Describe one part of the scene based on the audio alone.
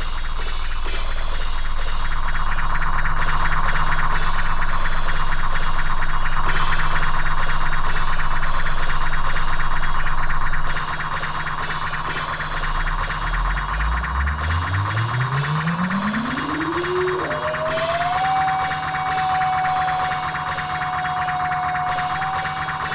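An electronic drum beat loops steadily.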